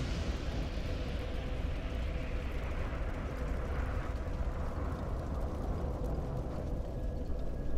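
A fire roars and crackles.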